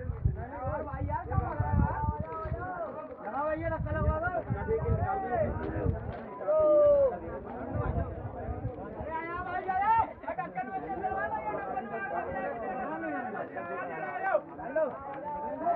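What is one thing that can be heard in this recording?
A crowd of men talk and shout nearby.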